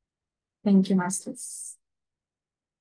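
A young woman speaks briefly and cheerfully through an online call.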